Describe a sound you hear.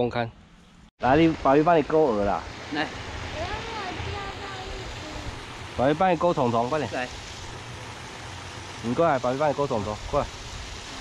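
Water spills steadily over a small weir.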